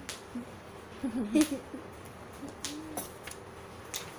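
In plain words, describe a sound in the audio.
A girl laughs close by.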